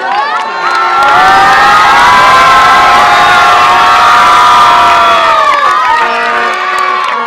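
A crowd cheers and shouts excitedly.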